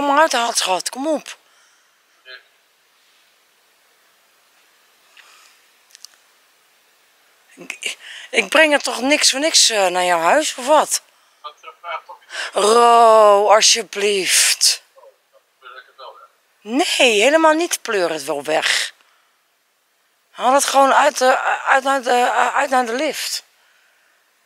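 A woman sings close by, in long pitched phrases with pauses between them.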